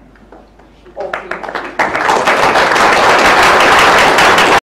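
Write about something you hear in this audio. An audience claps and applauds loudly in a large hall.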